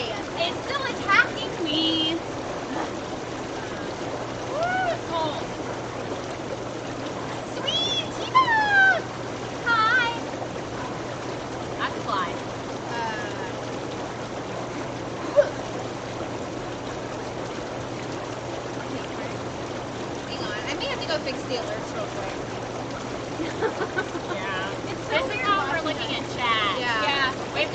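Young women talk and laugh close by, outdoors.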